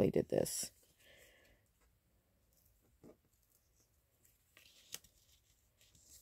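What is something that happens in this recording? Paper rustles softly as it is handled close by.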